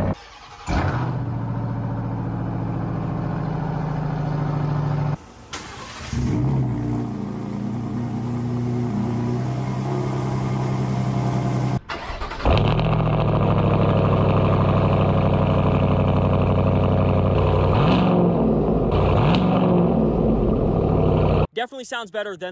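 A truck engine starts with a roar and settles into a loud, deep rumbling idle.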